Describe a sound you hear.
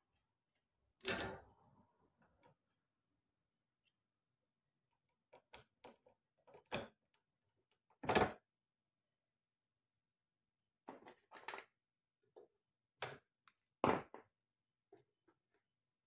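A small metal solenoid part clicks and clacks as it is handled.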